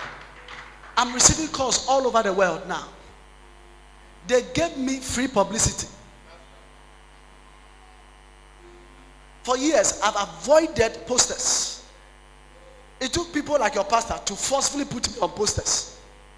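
A man speaks loudly and with animation through a microphone, in short bursts with pauses.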